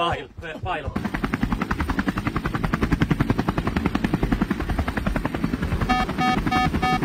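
Helicopter rotor blades thud in a fast, steady beat.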